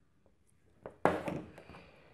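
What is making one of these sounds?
A small plastic bottle is set down on a wooden table with a light knock.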